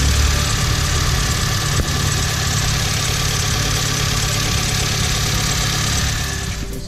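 A car engine idles with a steady rattling hum close by.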